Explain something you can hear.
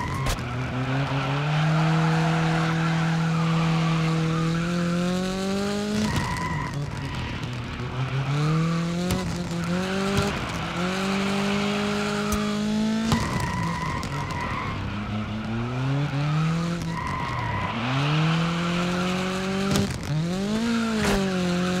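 Tyres screech as a car drifts through corners.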